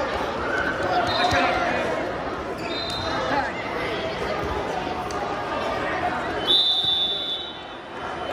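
A referee blows short shrill whistle blasts.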